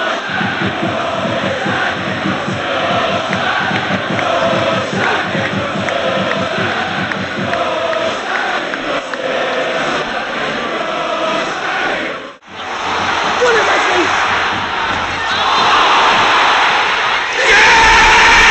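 A large stadium crowd sings and chants loudly outdoors.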